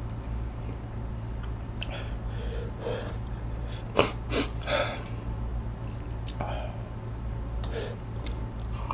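A young man chews and slurps food close to the microphone.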